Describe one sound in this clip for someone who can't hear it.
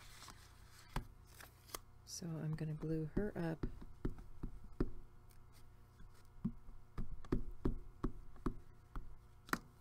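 A glue stick rubs across paper.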